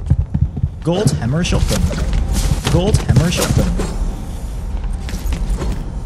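Footsteps run quickly across a wooden floor.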